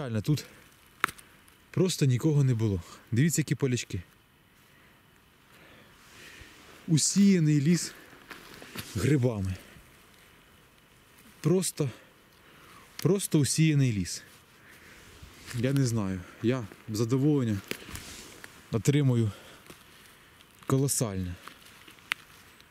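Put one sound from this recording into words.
A mushroom stem snaps as it is pulled from the ground.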